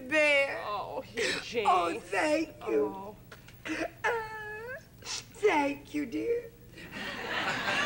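A woman sobs and wails loudly nearby.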